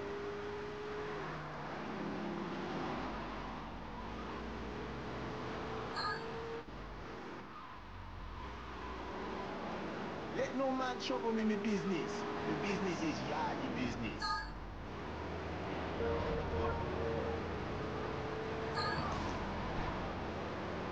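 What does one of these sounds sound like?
A car engine hums steadily as the car drives along.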